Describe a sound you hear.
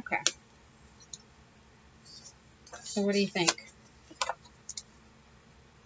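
Paper pages rustle and flutter as they are handled.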